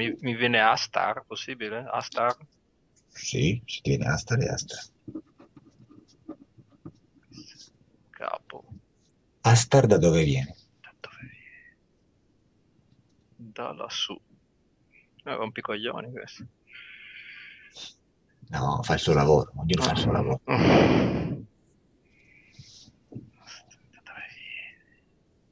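Another man answers over an online call.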